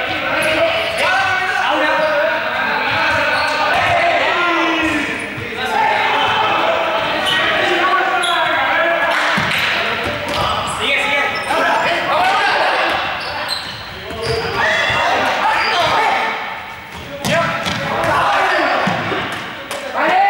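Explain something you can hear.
Young men and women shout and call out across a large echoing hall.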